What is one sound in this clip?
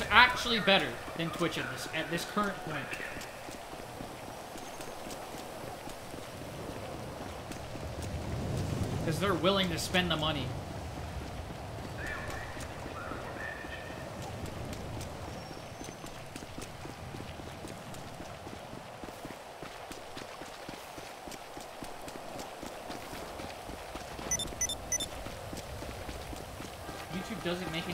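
Footsteps run quickly over hard ground.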